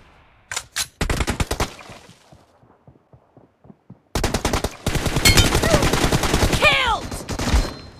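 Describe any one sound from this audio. Rapid automatic rifle fire crackles in bursts.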